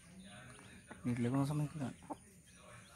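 A hen clucks low and softly nearby.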